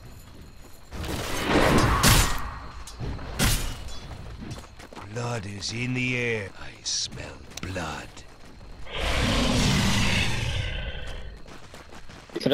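Magic blasts whoosh and crash in a fight.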